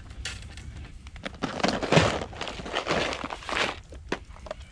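A plastic tackle box rattles as a hand handles it.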